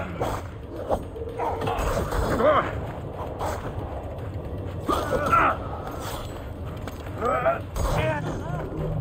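Metal blades clash and slash in a fight.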